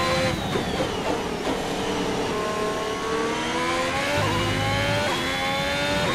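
A racing car engine screams at high revs, rising and dropping as the car shifts gears.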